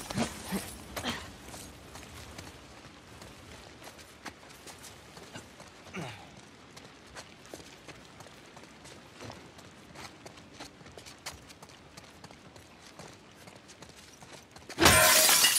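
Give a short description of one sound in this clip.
Footsteps tread softly on a hard floor.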